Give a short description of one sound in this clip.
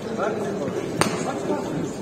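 A boxing glove lands a sharp punch.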